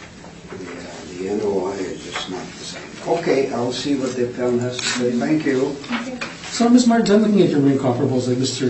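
A man speaks calmly through a room microphone.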